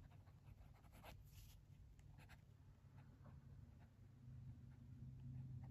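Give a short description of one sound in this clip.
A colored pencil scratches softly on paper.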